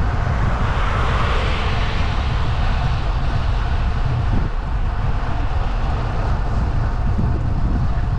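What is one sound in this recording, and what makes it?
A car passes close by and fades into the distance.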